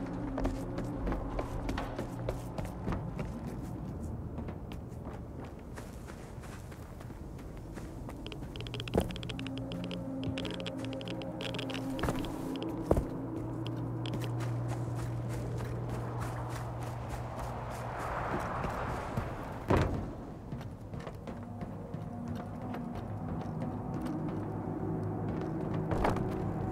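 Footsteps thud on wooden planks and rustle through dry grass.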